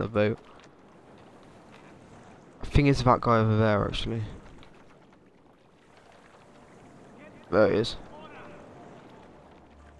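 Water splashes softly as an oar rows a small boat.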